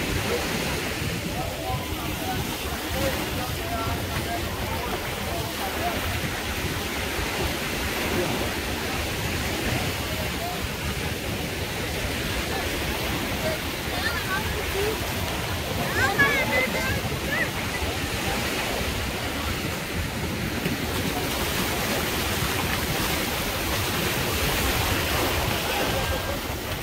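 Wind blows across the microphone.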